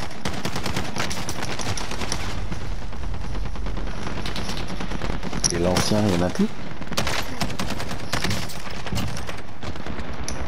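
Rapid gunfire bursts out in loud cracks.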